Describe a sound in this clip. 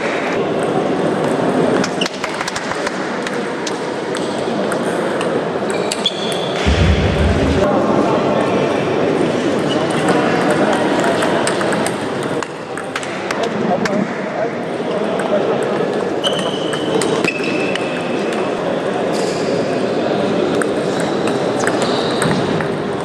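A ping-pong ball clicks back and forth against paddles and the table.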